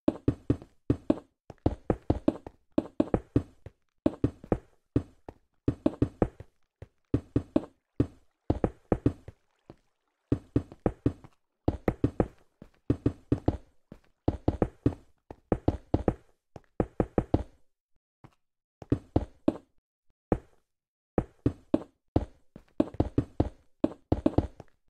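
Blocks are placed one after another with quick, dull knocks.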